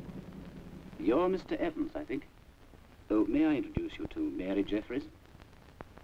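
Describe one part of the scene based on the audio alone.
An older man speaks gruffly, close by.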